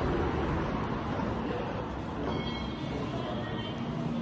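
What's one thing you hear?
Footsteps tap on a hard floor in an echoing hall.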